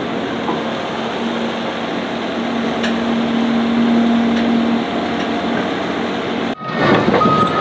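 A large excavator engine rumbles steadily outdoors.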